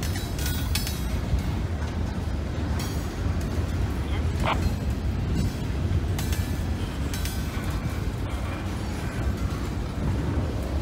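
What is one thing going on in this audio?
A freight train rumbles steadily past close by.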